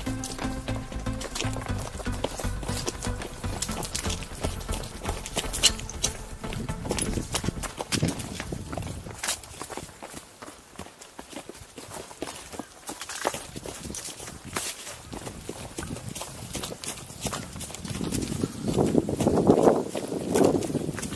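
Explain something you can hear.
Footsteps crunch on rocks and dry leaves.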